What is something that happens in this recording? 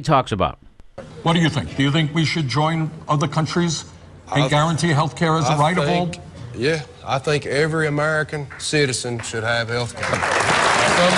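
A man speaks through a broadcast from a televised town hall.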